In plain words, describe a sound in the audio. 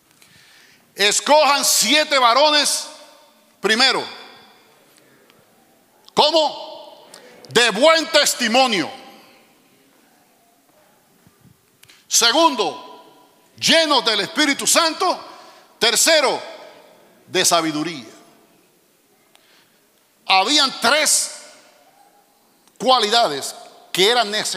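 A middle-aged man preaches with animation into a microphone, in bursts with pauses.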